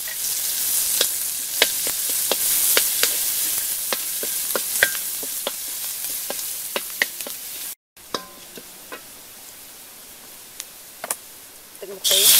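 Firewood crackles under a wok.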